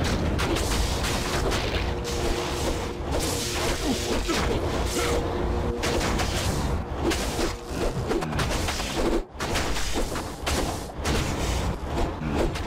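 Weapons clash and thud against enemies.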